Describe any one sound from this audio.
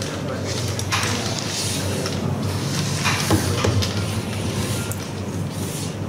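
Wooden game pieces clatter together as hands sweep them across a board.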